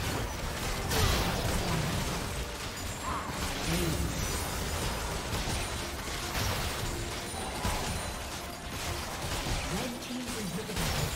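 Spell effects whoosh, crackle and burst in a fast fight.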